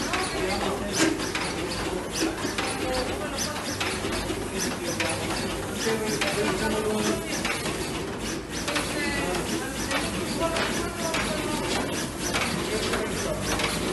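A label printing machine whirs and clatters steadily.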